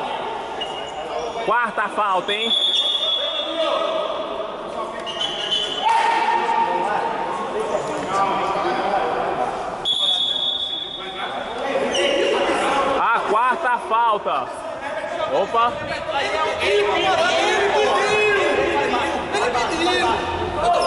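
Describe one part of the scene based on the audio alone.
Men shout and call out to each other in an echoing hall.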